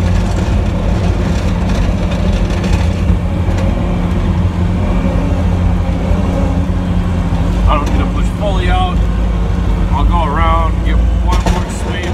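A truck engine rumbles steadily close by.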